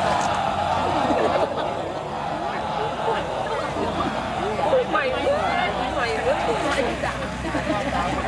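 A crowd of men and women chants together outdoors.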